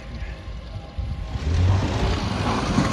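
A car engine revs.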